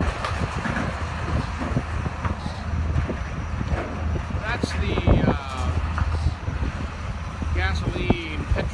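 A truck engine rumbles as it drives off a ferry ramp.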